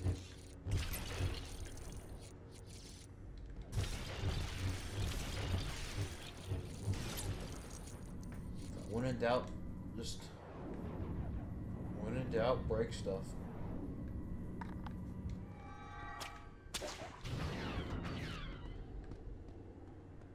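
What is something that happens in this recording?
A lightsaber hums and swings with buzzing swooshes.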